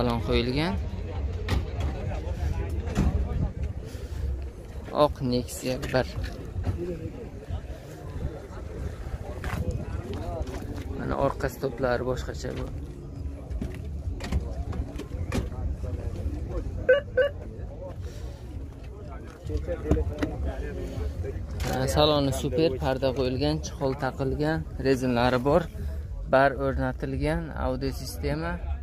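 Adult men talk nearby outdoors.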